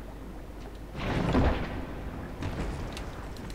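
A fire flares up with a roaring whoosh.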